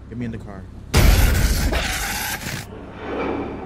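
A young man screams loudly into a microphone.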